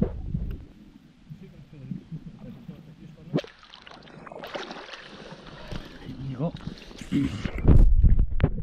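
Water laps and splashes close by.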